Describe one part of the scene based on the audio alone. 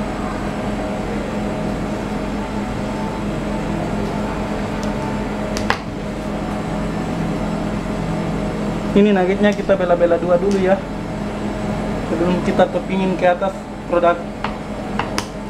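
A knife taps against a metal counter while cutting dough.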